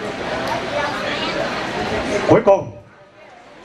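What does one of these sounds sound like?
An older man speaks calmly into a microphone over a loudspeaker outdoors.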